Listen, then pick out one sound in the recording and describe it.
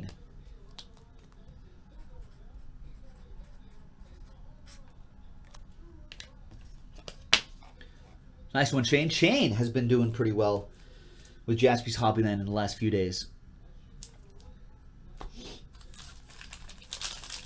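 Cardboard boxes and card sleeves rustle and tap as they are handled.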